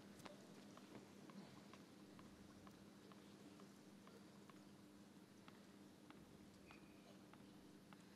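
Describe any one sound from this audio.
A tennis ball bounces repeatedly on a hard court.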